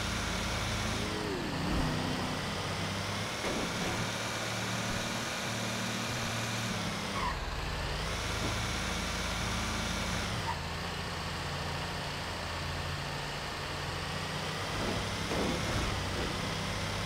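A car engine hums steadily as it drives along a road.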